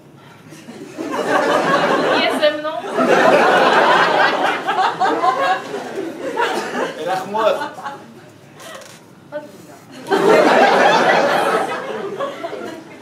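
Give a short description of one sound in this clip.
An audience laughs and applauds.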